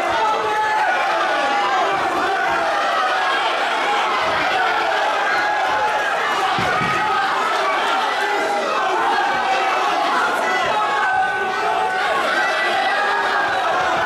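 Gloved punches and kicks land with dull thuds.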